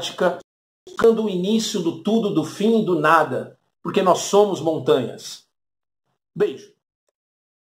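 A man talks with animation close to the microphone.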